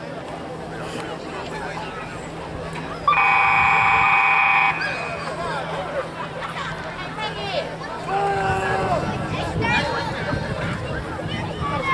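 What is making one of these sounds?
Young players shout and chatter on an open field.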